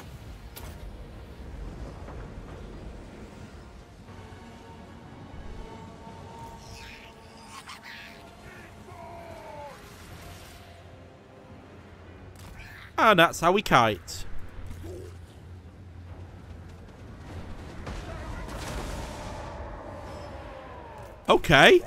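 Magical bolts whoosh and crackle in a battle.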